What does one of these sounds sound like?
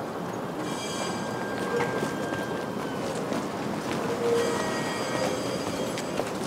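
Footsteps tap on wet pavement outdoors.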